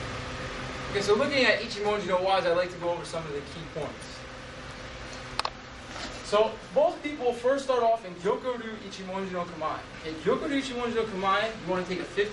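A man speaks calmly to a group.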